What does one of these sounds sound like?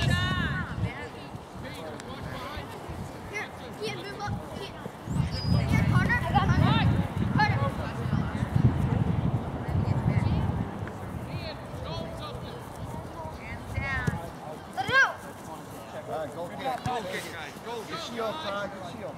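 Children shout to each other across an open field.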